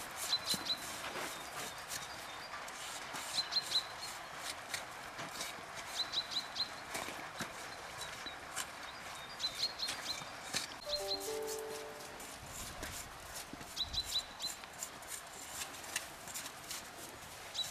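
A blade scrapes and carves packed snow.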